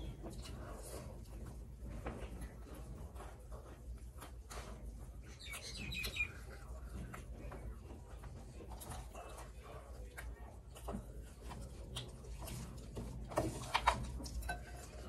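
A young woman chews food noisily close up.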